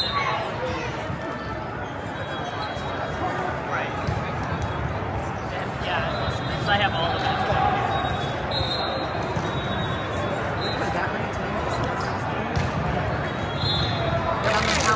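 A crowd chatters and murmurs throughout a large echoing hall.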